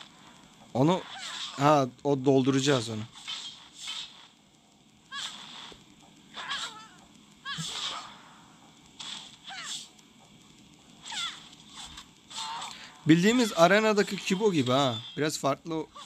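Swords clash and swish in a fight.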